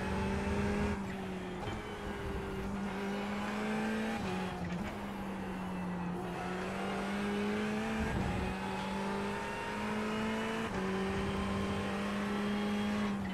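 A racing car engine roars steadily, its pitch climbing through the gears and dropping as it brakes.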